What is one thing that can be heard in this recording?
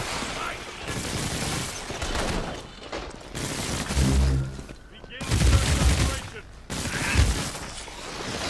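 Crackling energy blasts burst and explode.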